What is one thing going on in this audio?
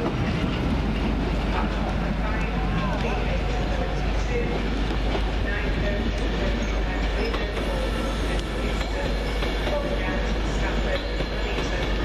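A train's carriages rumble away along the tracks and slowly fade.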